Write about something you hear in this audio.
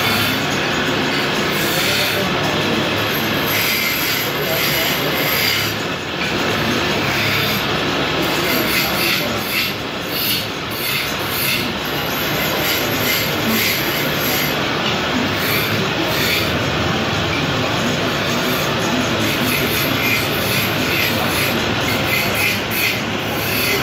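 A hand-held gouge scrapes and cuts into spinning wood, throwing off shavings.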